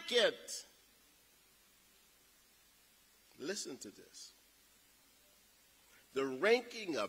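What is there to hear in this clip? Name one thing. A man speaks slowly and formally through a microphone and loudspeakers in a large echoing hall.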